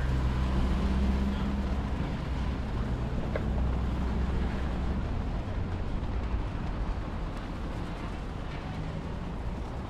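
A van's engine idles at the curb.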